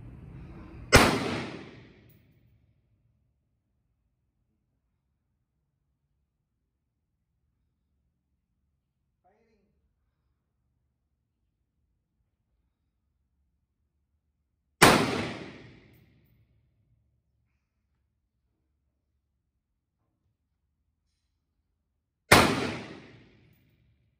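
A rifle fires single shots outdoors, each bang echoing off a wall.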